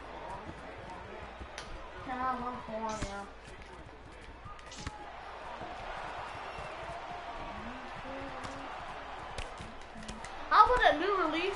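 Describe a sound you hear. A crowd cheers and roars in the background.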